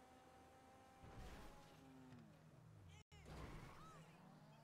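A car crashes with a loud metallic crunch.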